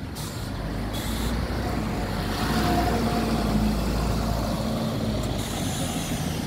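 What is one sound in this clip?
A bus engine idles with a low rumble nearby.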